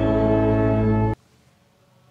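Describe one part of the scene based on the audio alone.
Women sing together loudly.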